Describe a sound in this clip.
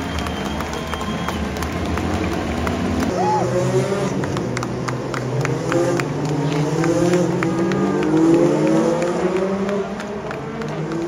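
A crowd cheers and murmurs outdoors.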